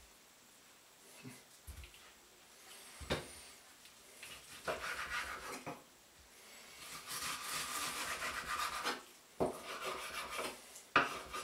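A knife cuts meat on a wooden board with knocks and scraping.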